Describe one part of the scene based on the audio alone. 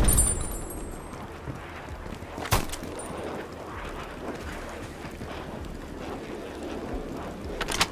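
Footsteps run quickly over a wet street.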